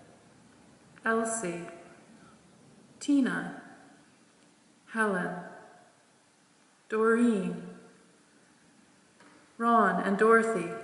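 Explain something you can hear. A man chants short sung phrases through a microphone in a large echoing hall.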